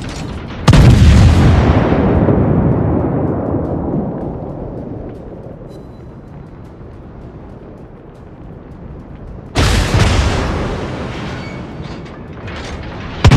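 Heavy guns fire in a deep booming salvo that rumbles away slowly.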